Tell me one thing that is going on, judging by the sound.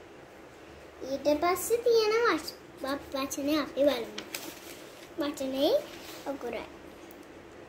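A young girl speaks close by with animation.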